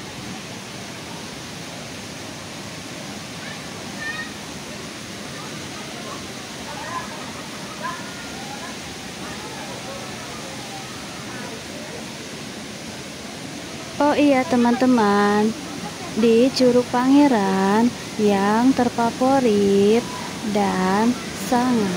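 Water rushes and splashes over rocks nearby.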